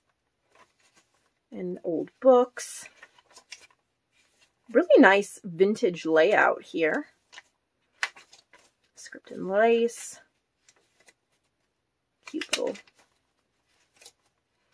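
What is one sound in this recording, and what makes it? Paper pages rustle as they are turned one by one.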